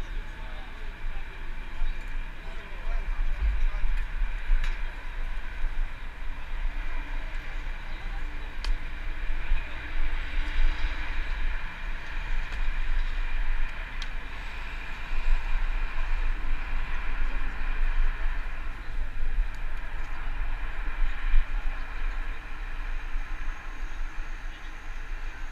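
A crowd of people chatters in the distance.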